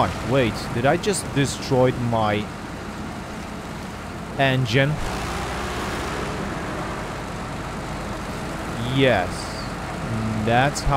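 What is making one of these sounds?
A man talks animatedly into a microphone, close up.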